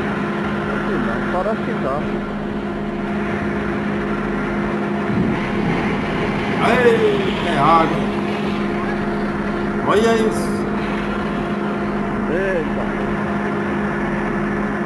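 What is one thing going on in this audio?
Water gushes and splashes from a well.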